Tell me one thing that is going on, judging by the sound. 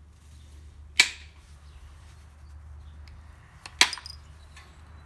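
Stone flakes snap off with sharp clicks under a pressure tool.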